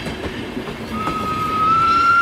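A steam train whistle blows and rises slightly in pitch.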